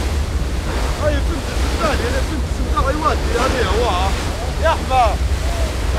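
A man shouts outdoors in the wind.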